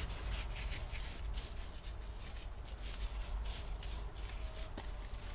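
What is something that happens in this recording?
A gloved hand scrapes and rakes through loose soil.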